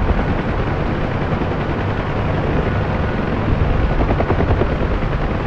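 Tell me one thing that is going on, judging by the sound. A helicopter's rotor thumps loudly and steadily.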